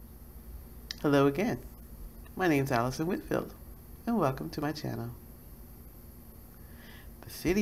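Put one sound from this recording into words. A middle-aged woman speaks calmly into a microphone, heard as if over an online call.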